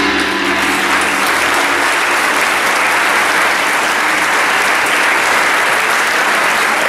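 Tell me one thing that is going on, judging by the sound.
A brass and percussion band plays in a large hall.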